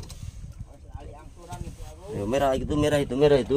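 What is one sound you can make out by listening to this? A man speaks loudly nearby.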